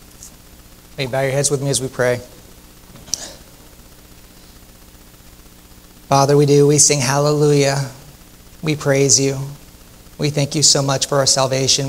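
A man speaks calmly into a microphone through loudspeakers in a large room.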